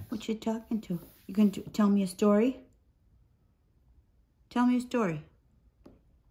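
A woman speaks softly and playfully, close by.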